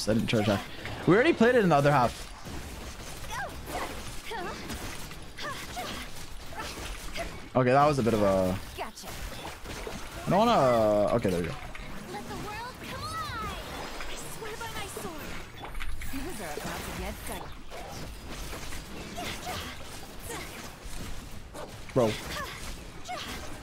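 Game combat effects whoosh and blast rapidly.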